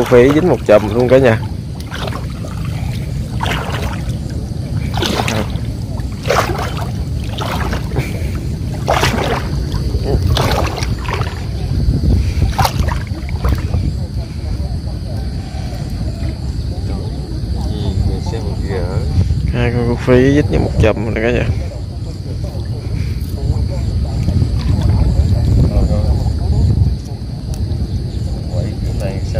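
Water splashes and sloshes as a man wades.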